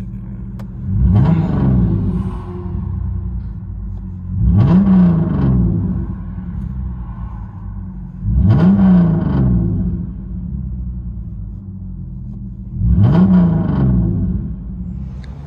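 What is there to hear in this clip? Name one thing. A car engine revs hard several times and settles back.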